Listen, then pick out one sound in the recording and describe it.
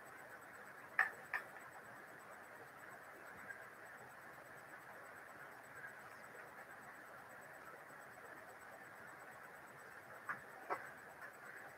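Objects knock lightly against a desk.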